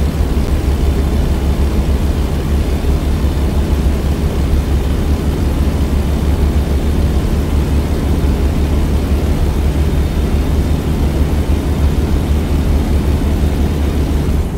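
A truck's diesel engine rumbles steadily while cruising.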